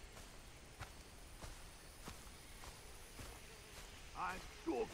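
Footsteps rustle through grass and undergrowth at a steady pace.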